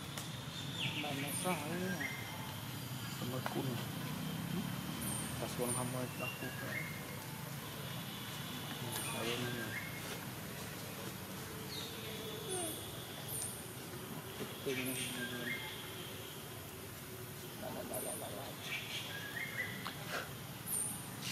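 A baby monkey squeals and whimpers close by.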